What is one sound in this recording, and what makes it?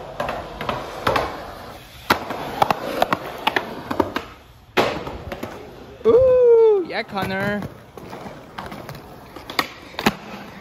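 Skateboard wheels roll over concrete with clacks at the joints.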